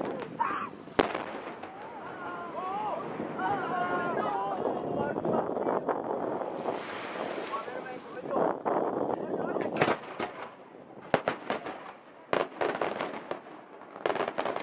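Fireworks burst with loud bangs and crackles.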